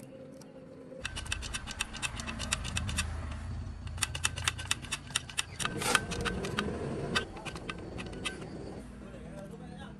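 A battery power tool whirs and rattles in short, repeated bursts.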